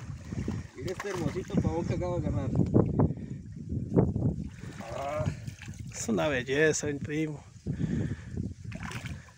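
A fish splashes and thrashes in shallow water.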